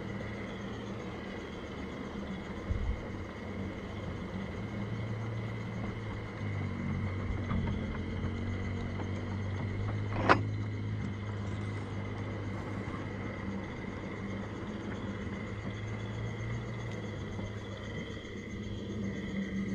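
A small train rolls along rails with a steady rumbling hum.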